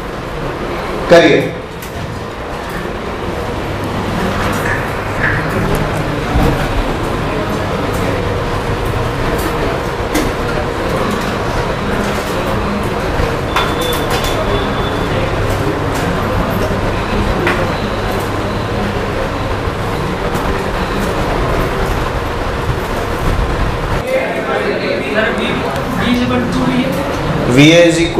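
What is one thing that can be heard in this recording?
A man speaks calmly and steadily, as if lecturing.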